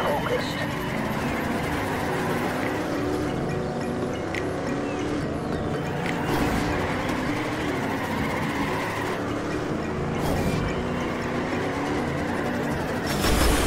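Car tyres screech while drifting around corners.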